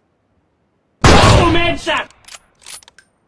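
A sniper rifle fires a loud shot that echoes.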